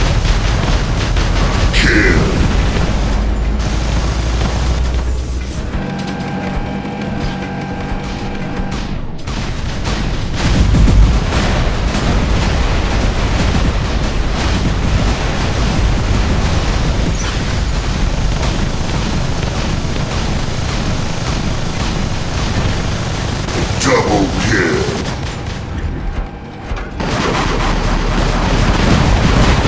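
Heavy metal footsteps thud as a giant robot walks.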